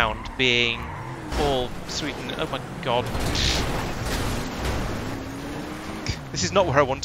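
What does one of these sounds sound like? A car engine revs.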